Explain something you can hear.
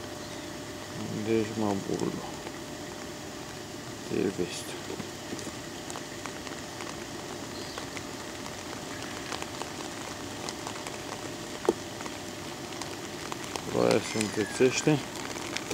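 A man speaks briefly and close to a microphone.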